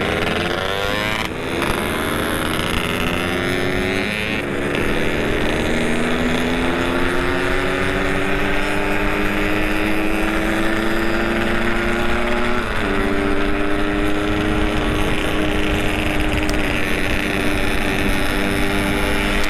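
Wind rushes past as the motorcycle rides along.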